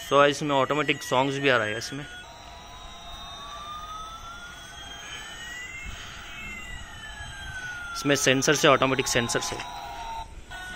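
A toy airplane plays a loud electronic tune in short bursts.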